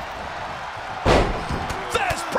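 A body slams hard onto a wrestling ring mat.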